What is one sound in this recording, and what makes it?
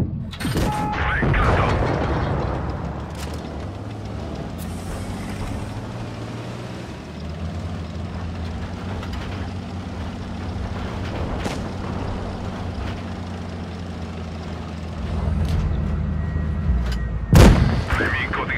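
A tank cannon fires.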